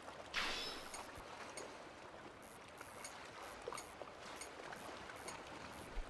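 A fishing reel clicks as it is wound.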